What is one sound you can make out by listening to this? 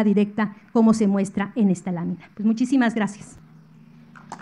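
A woman speaks with animation over a microphone and loudspeakers.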